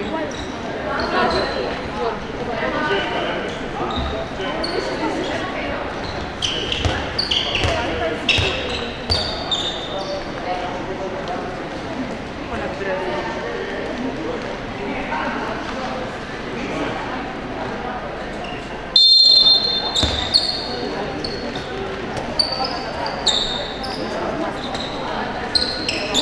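Players call out to each other across the echoing hall.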